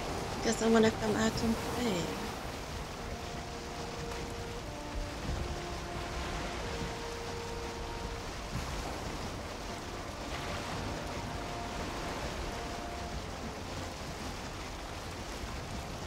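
Waves splash against a wooden boat.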